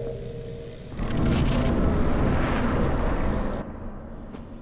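A deep, airy whoosh rushes up and then cuts off.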